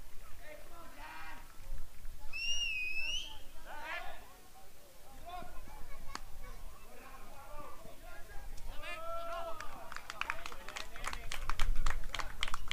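Young men shout from across an open field.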